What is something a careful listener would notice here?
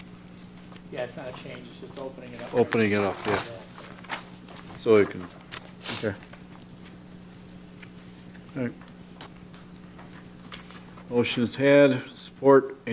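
A middle-aged man speaks calmly into a microphone, reading out.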